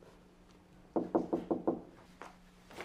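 A man knocks rapidly on a door.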